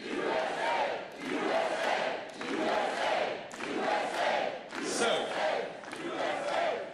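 A large crowd chants in unison, over and over, in a big echoing hall.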